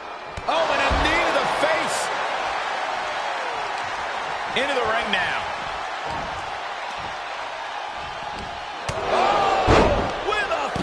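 Heavy bodies thud hard against the floor.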